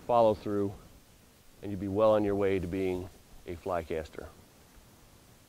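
A man speaks calmly outdoors, heard through a microphone.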